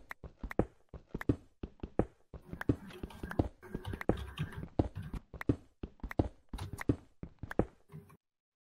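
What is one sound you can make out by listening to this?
A pickaxe chips at stone blocks with quick, repeated taps.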